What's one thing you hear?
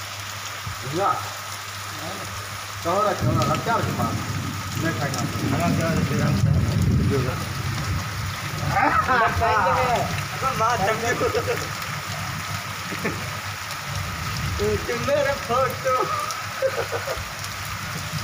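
A man talks loudly over the rain, close by.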